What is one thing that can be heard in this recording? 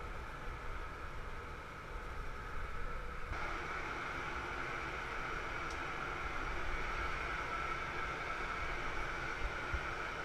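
A furnace roars steadily, growing louder close by.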